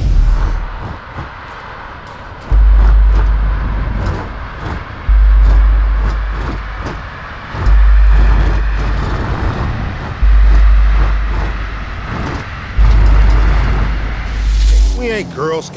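A car engine roars as a car speeds along a road.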